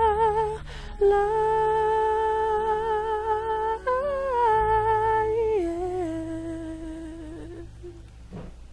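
A man sings a long, wavering held note that steps down and fades away.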